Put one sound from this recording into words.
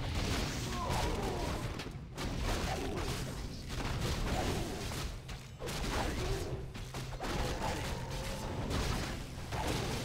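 Weapons clash and strike over and over in a busy fight.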